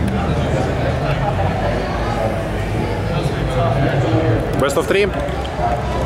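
A crowd of young men chatter and talk over one another nearby.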